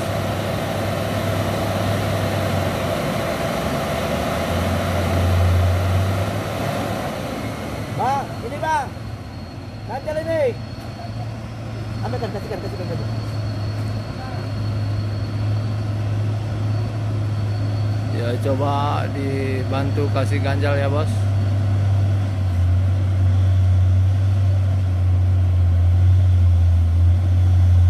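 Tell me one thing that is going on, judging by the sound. A truck engine rumbles steadily at idle and grows louder as the truck creeps forward.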